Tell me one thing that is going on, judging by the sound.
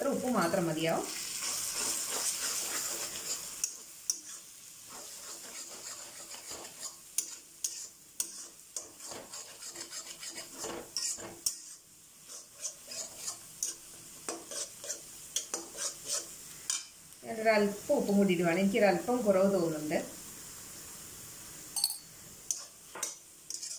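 A metal spatula scrapes and taps against a metal pan.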